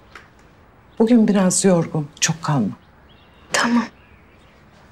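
An elderly woman speaks quietly and calmly up close.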